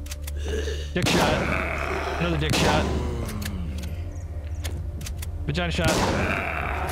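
A shotgun fires loud, booming blasts.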